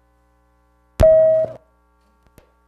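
A microphone gives a sharp thump and a brief squeal.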